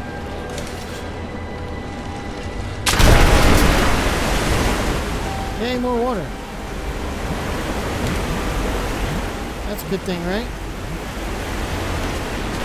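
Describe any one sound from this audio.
Water rushes and splashes steadily.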